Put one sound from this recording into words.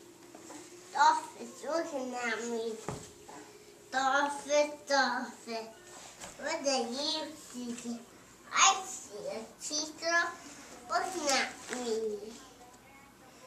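A young child talks nearby in short bursts.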